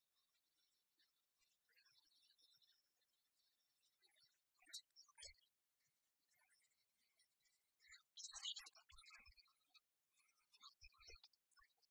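Light, tinkling video game music plays throughout.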